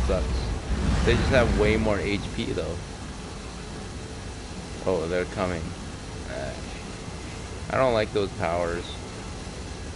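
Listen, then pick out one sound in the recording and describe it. A man speaks in short bursts close to a microphone.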